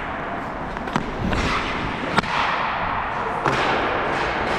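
Hockey sticks click against the ice and puck.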